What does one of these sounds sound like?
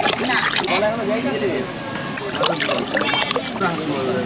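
A spoon stirs and sloshes thick liquid in a plastic tub.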